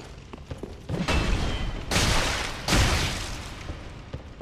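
Swords swing and slash in quick bursts.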